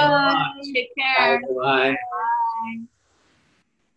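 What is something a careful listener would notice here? A woman laughs and greets over an online call.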